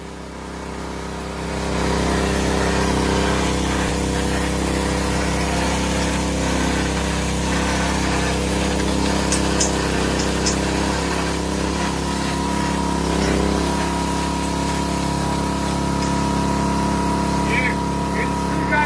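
Water sprays hard from a burst pipe with a steady hiss.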